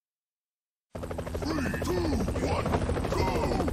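A video game helicopter's rotor thumps steadily.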